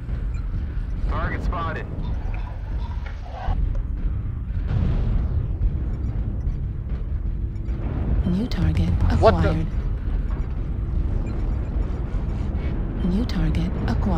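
A deep mechanical rumble drones steadily.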